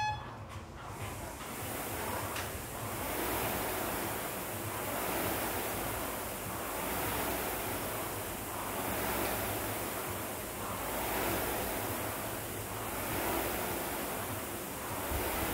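A rowing machine's fan whooshes in a steady rhythm of strokes.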